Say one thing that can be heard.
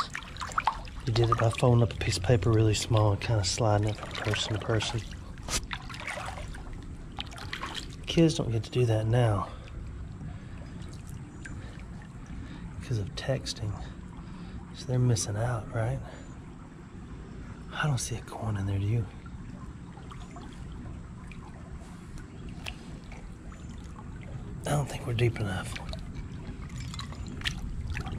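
A hand splashes and swishes through shallow water.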